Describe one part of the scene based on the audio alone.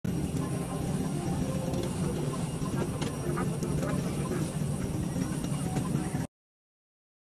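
A steady low hum fills an aircraft cabin.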